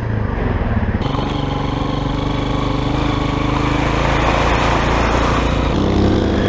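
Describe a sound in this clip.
A dirt bike engine buzzes and revs close by.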